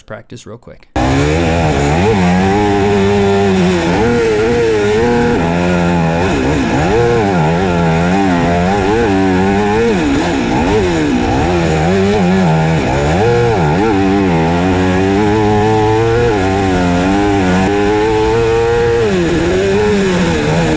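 A motorcycle engine revs and roars loudly, rising and falling in pitch.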